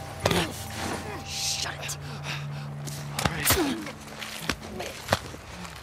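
A man chokes and gasps while being strangled.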